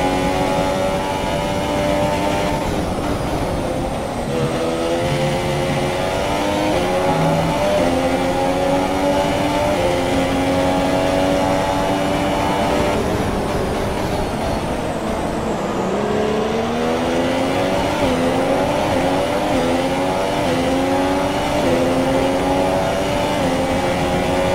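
A Formula One car's engine shifts gears, its pitch dropping and climbing again.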